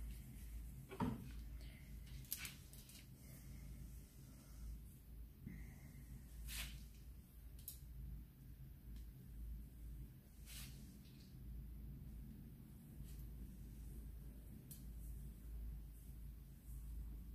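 Scissors snip through hair in short clicks.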